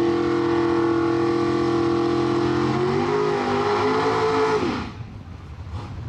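Tyres screech as a car does a burnout.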